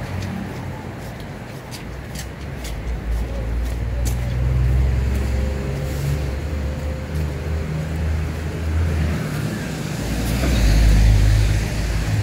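Footsteps fall on wet pavement.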